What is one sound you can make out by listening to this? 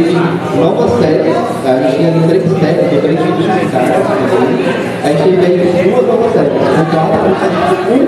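A man speaks into a microphone in a conversational tone.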